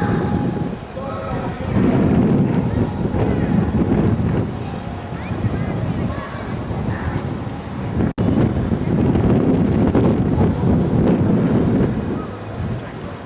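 Wind blows hard and rumbles outdoors.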